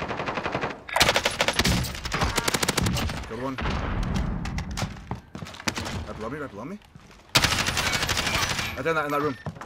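A rifle fires in rapid, loud bursts.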